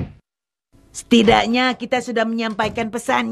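A woman speaks in a high, cartoonish voice, sounding surprised.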